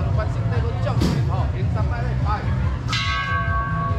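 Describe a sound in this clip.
A crowd of men and women talk nearby.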